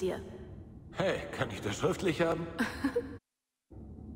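A young man asks a question.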